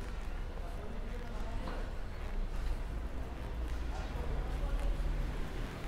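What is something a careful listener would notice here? Footsteps of a man tap on pavement outdoors.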